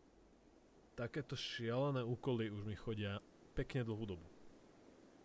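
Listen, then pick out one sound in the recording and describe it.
A young man speaks briefly with animation into a microphone, close by.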